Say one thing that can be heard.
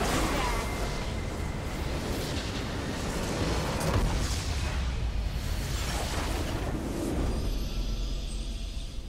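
Spell effects crash and boom in a chaotic battle.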